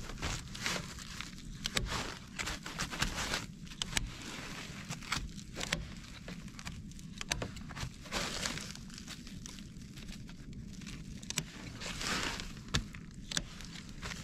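A knife slices through a crinkly sheet of foil insulation.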